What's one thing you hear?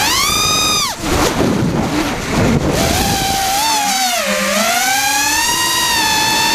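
A small drone's motors whine loudly, rising and falling in pitch.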